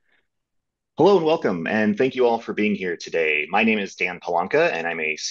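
A young man speaks calmly into a microphone over an online call.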